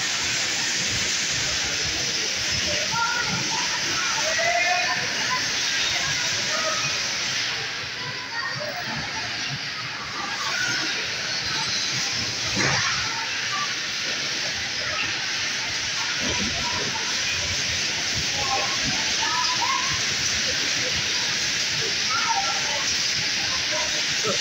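Children shout and chatter excitedly.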